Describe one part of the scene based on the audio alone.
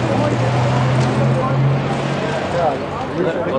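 A car engine hums nearby.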